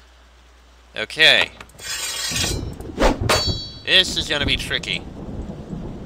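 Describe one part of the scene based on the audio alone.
Weapons clash in a fight.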